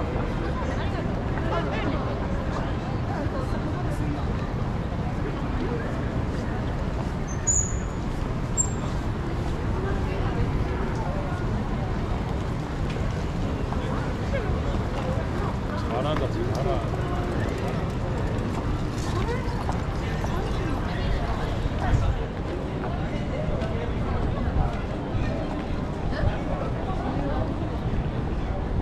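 A crowd of people murmurs and chats nearby, outdoors.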